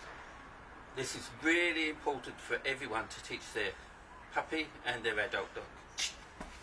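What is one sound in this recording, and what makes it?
A man talks calmly and encouragingly nearby.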